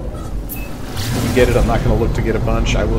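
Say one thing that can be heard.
A spaceship whooshes as it surges forward at speed.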